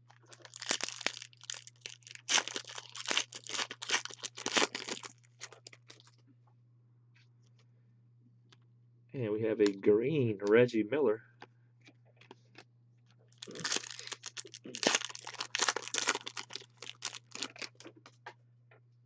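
A foil wrapper crinkles and rustles in someone's hands.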